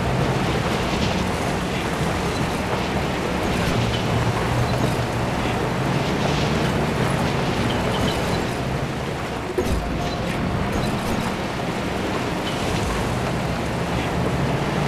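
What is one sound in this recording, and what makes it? Tyres rumble over a dirt track.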